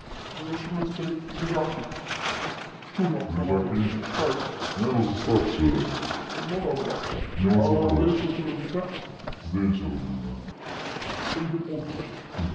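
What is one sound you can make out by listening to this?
A young woman answers quietly.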